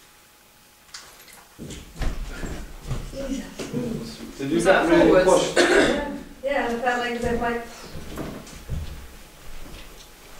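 Several people murmur and answer softly.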